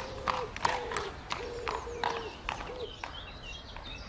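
A horse's hooves clop on stone paving.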